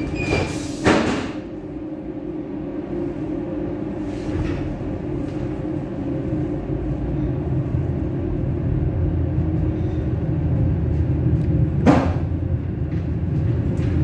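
A train rumbles steadily along the tracks, heard from inside the driver's cab.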